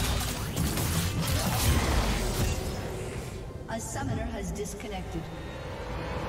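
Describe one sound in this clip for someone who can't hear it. Game fighting effects clash and burst.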